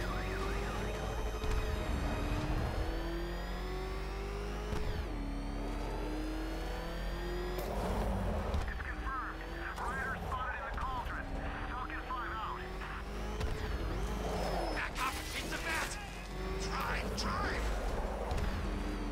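A powerful car engine roars and revs, rising and falling in pitch.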